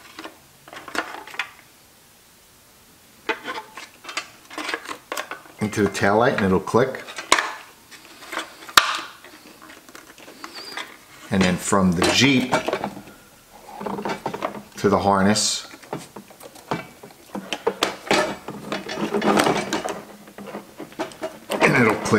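Plastic wire connectors click and rattle.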